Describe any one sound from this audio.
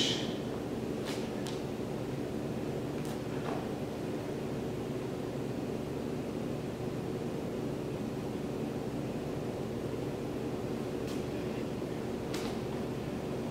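Bare feet and hands thud softly on a mat.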